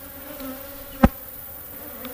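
A wooden hive lid knocks shut.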